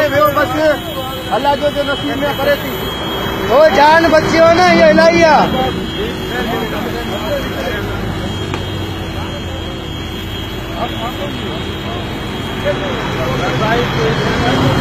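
A large fire roars and crackles close by.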